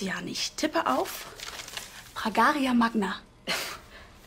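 A young woman speaks calmly up close.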